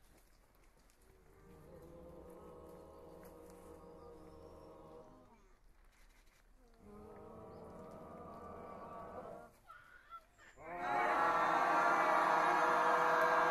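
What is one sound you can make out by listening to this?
A choir of men and women sings together in harmony.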